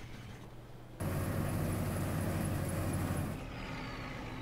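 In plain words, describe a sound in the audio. A combine harvester engine roars loudly.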